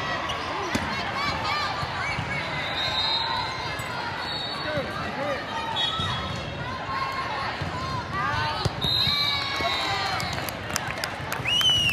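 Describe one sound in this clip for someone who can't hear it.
Young women shout and call out to each other during play.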